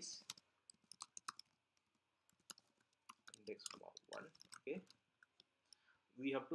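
Keyboard keys click in quick bursts.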